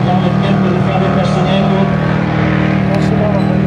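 A race car engine roars loudly as the car speeds past.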